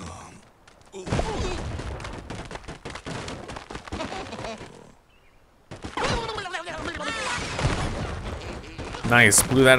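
Wooden blocks crack, crash and tumble down.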